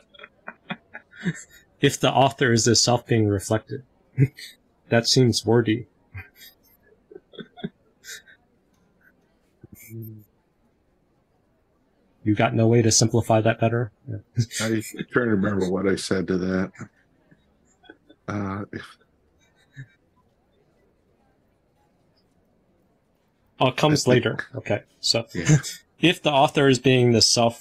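A middle-aged man speaks calmly with animation over an online call, with pauses.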